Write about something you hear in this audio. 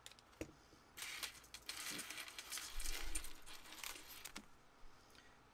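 A thin wire scrapes and rustles as hands handle it.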